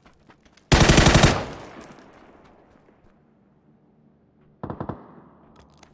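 A rifle fires rapid bursts of shots that echo away.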